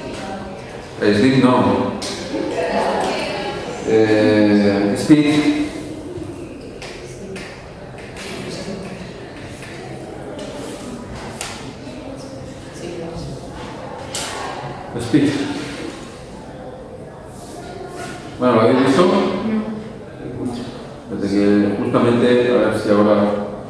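A man lectures through a microphone in an echoing hall, speaking in bursts with pauses.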